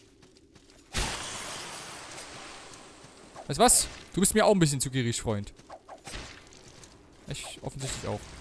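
A sword swings and strikes with sharp metallic hits.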